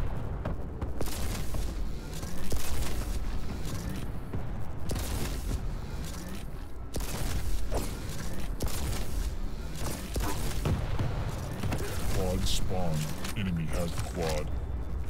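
A rifle fires loud, sharp shots every few seconds.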